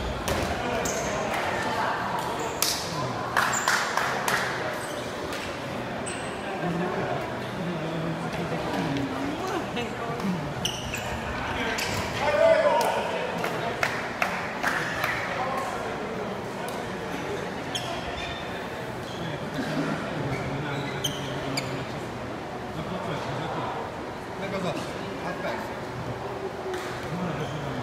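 Sports shoes squeak on the hall floor.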